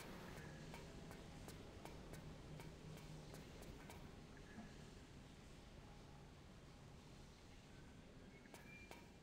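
Footsteps clank quickly on a metal floor.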